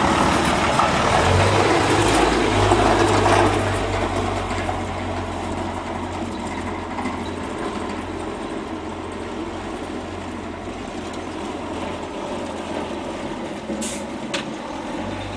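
A truck's diesel engine rumbles loudly close by, then fades as the truck drives away.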